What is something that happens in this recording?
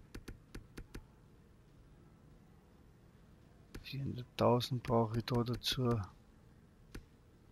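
Short interface clicks tick as menu items change.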